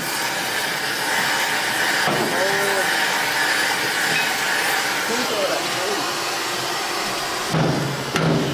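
A cutting torch hisses and roars steadily against metal.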